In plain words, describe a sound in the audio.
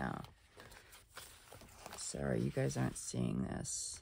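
Sheets of paper rustle and flap as they are handled.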